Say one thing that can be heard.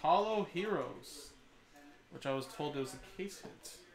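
Cards rustle and snap in a man's hands.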